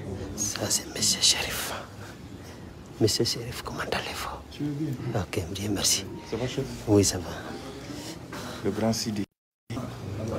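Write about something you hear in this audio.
A man speaks close by, with animation.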